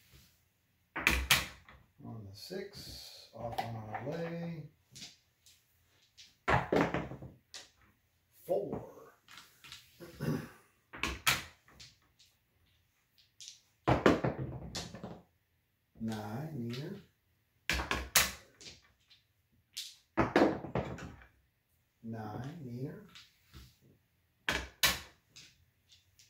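Dice bounce and clatter across a felt table.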